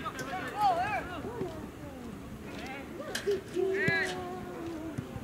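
Men shout and call out nearby outdoors.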